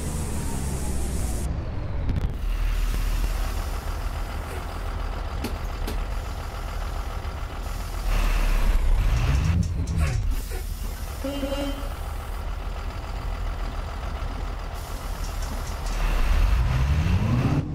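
Bus doors hiss open and shut.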